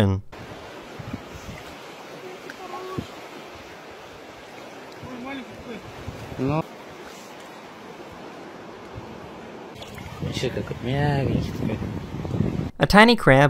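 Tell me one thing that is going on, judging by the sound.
Shallow water laps gently.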